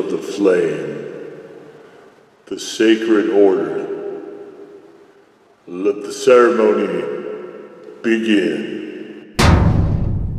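A man sings out in short, loud bursts that ring and echo.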